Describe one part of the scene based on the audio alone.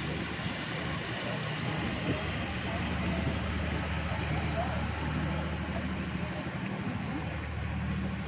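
Water churns and splashes behind a passing boat.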